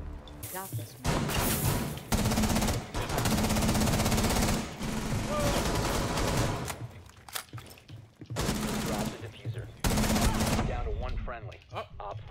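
Rapid gunfire crackles in loud bursts.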